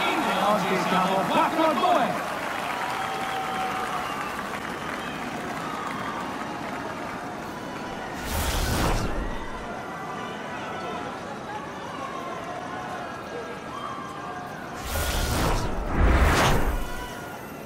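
A crowd cheers and claps in the stands.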